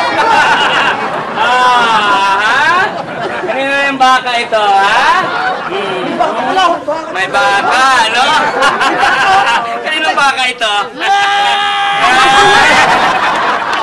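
A crowd of people chatters and laughs nearby.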